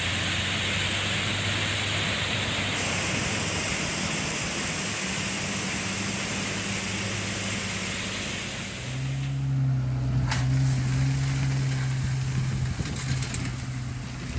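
A diesel truck engine hums steadily close by.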